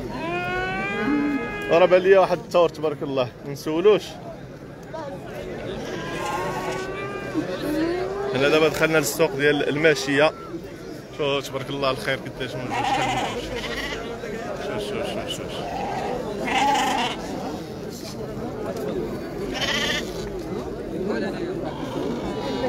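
A large crowd of men talks and calls out outdoors.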